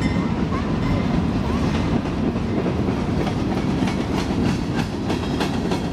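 Diesel locomotives rumble past close by.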